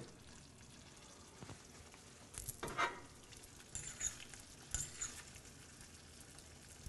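A sauce simmers and bubbles in a pan.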